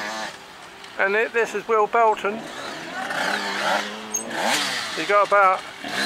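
A motorcycle engine revs loudly and roars past nearby.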